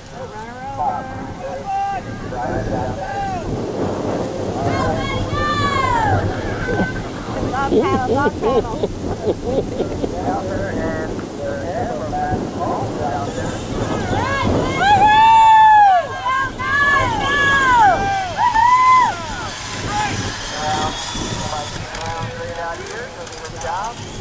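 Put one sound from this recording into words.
Small motorbike engines whine and rev as they race past.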